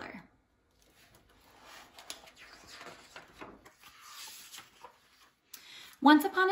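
Paper pages rustle and flip as a book is turned through.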